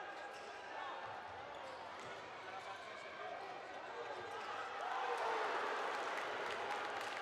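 Sneakers squeak sharply on a hard indoor court.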